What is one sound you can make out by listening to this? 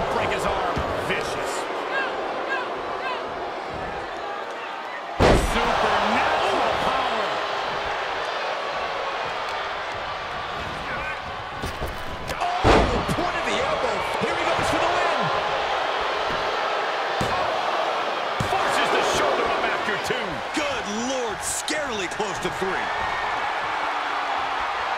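A large crowd cheers and roars steadily throughout a big echoing arena.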